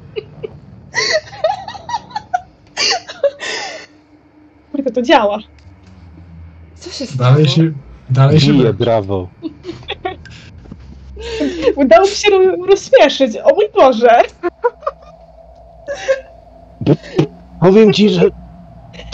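A woman laughs and talks over an online call.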